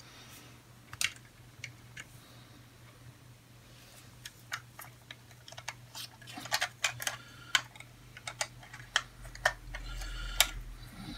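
Plastic toy bricks click and snap together.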